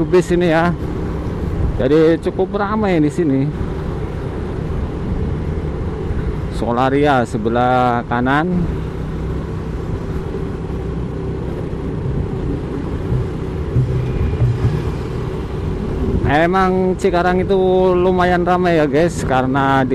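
A motorcycle engine hums steadily at close range.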